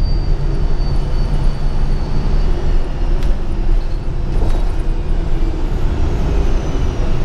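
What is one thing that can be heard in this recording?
The bus rattles and creaks as it rolls along the road.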